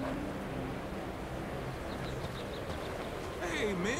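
Footsteps scuff along a dirt path.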